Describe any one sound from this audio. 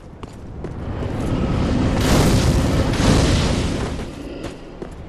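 Fire roars and whooshes past.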